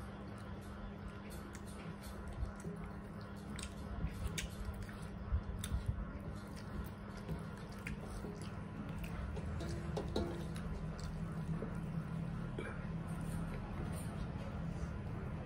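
A man and a woman chew and slurp food noisily, close by.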